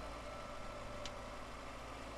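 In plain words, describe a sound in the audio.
A car door latch clicks open.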